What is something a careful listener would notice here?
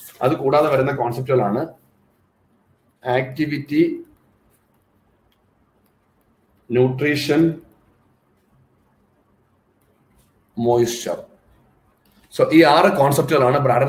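A man speaks calmly in short phrases, heard close through a microphone with pauses between them.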